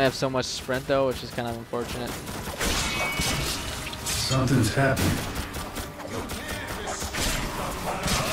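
A sword slashes through the air with a swish.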